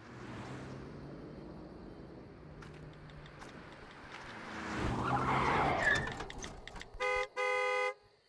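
A car engine hums and grows louder as a car approaches.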